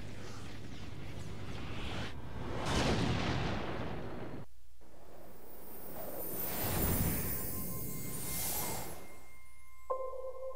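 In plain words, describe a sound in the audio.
Whooshing sound effects swell and fade.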